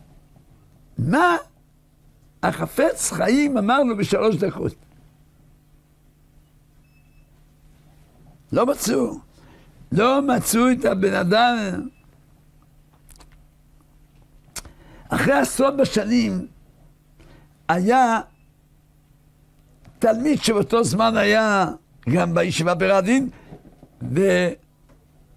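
An elderly man speaks with animation into a close microphone, in bursts with pauses.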